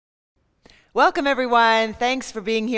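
A woman speaks with energy, close to a microphone.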